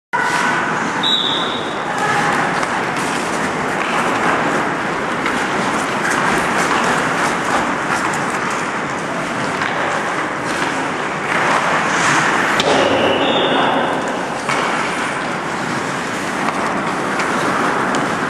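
Ice skates scrape and carve on ice in an echoing rink.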